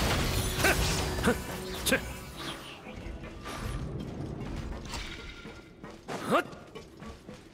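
Magic blasts crackle and boom in a fight.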